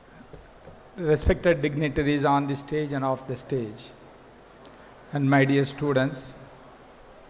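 A middle-aged man speaks calmly into a microphone over loudspeakers, in an echoing hall.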